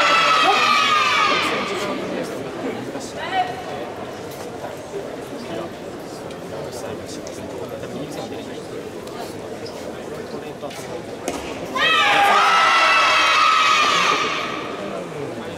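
Young people call out together in long, drawn-out shouts.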